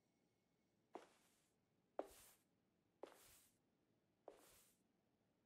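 Footsteps tap slowly across a hard floor.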